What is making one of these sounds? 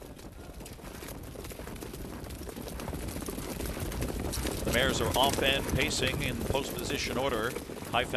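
Horses' hooves pound on a dirt track and grow louder as they come near.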